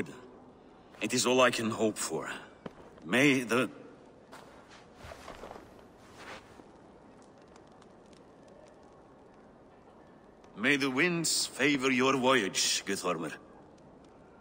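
A second middle-aged man answers in a deep, steady voice.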